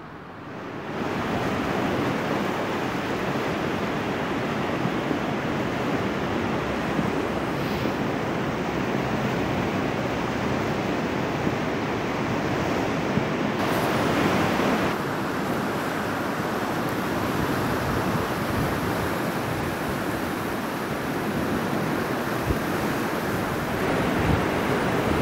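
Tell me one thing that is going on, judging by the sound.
Turbulent sea water rushes and churns past a concrete pier.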